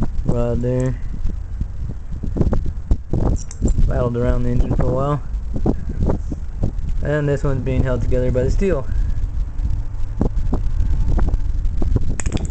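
Broken metal pieces clink and scrape as a hand handles them.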